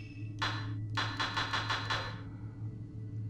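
Short menu ticks sound in quick succession as a selection scrolls.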